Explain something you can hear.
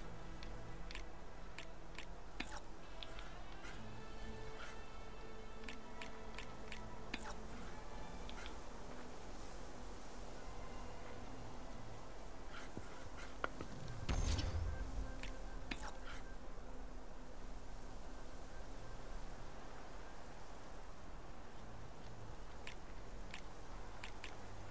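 Soft game clicks and chimes sound as pieces are selected and moved.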